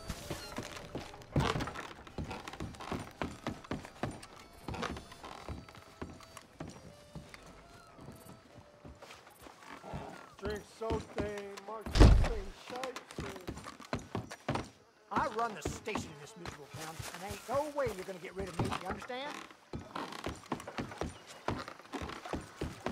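Boots thud on hollow wooden boards at a brisk pace.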